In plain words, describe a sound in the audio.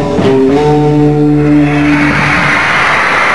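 A band plays electric guitars and drums loudly.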